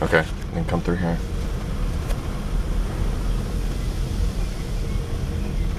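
A car engine rumbles low and steadily from inside the car as it drives.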